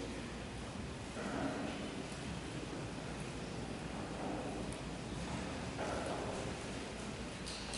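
Orchestra instruments play soft scattered notes.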